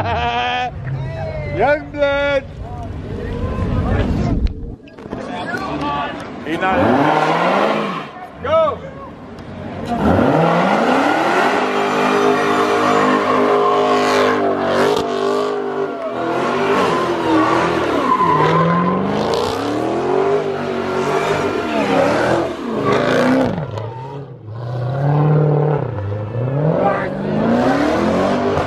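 A crowd cheers nearby.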